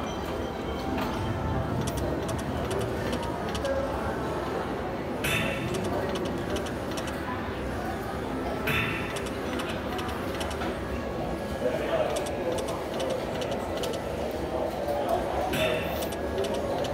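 Slot machine reels spin with rapid ticking clicks.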